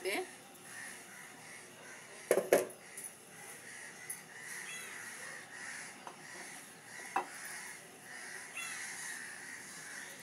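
Food sizzles and bubbles steadily under a pot lid.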